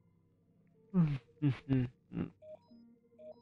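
A man speaks briefly and loudly into a close microphone.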